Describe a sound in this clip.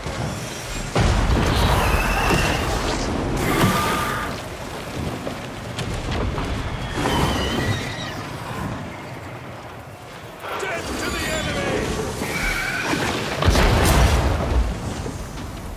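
Magic blasts burst loudly with a rushing whoosh.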